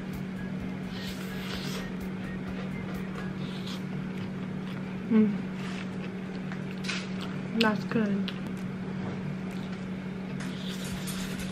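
A young woman slurps noodles up close.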